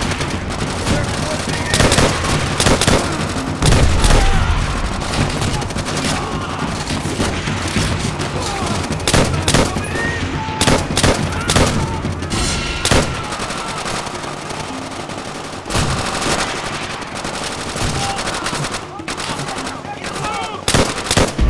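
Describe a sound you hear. Gunshots fire in bursts, loud and close.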